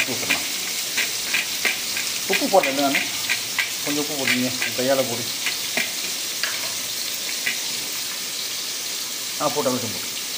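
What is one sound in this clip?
A hand squelches and mixes wet food in a metal bowl.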